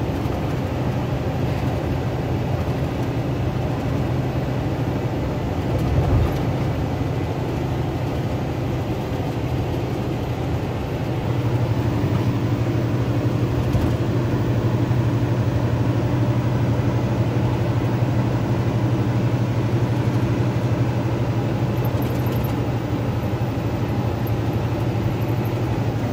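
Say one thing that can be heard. A diesel semi truck's engine drones as it cruises along a highway, heard from inside the cab.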